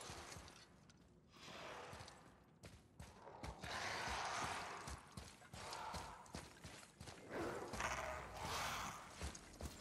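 Heavy footsteps thud steadily on the ground.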